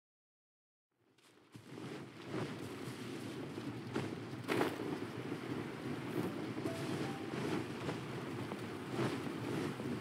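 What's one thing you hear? Footsteps run across stone and wooden boards.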